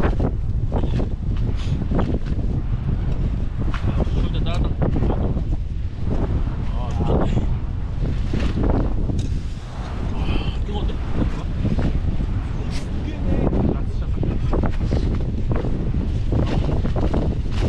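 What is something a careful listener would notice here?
Two young men talk casually up close.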